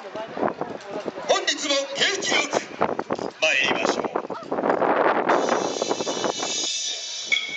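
Festival music plays loudly over outdoor loudspeakers.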